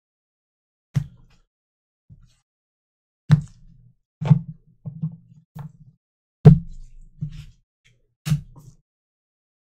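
Hard plastic cases clack down on a tabletop, one after another.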